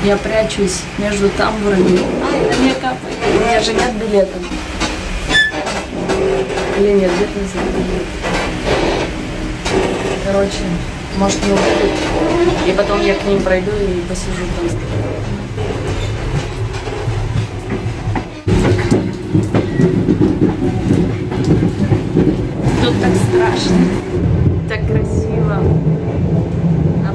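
A train rumbles and rattles along steadily.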